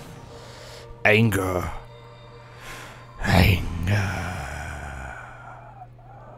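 A magical burst whooshes and shimmers with chiming sparkles.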